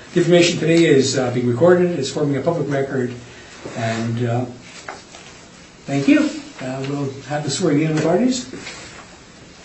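A man speaks calmly through a microphone in a quiet room.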